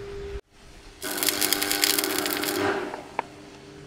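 An arc welder crackles and buzzes.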